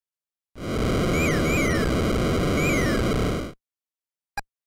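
A race car engine roars steadily in a retro video game, then cuts off.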